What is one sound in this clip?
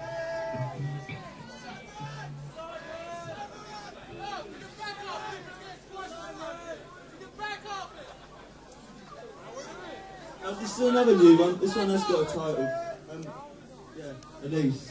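A man sings into a microphone over a live band.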